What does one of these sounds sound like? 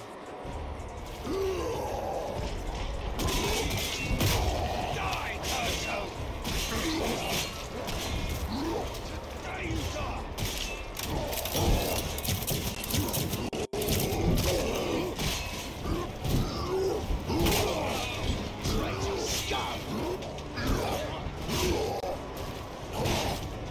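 Heavy melee weapons clash and thud in a brawl.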